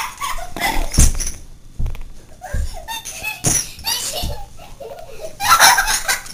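A plastic toy knocks and thumps on the floor.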